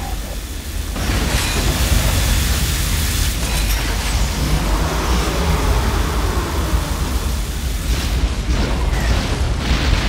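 An energy gun fires with a crackling buzz.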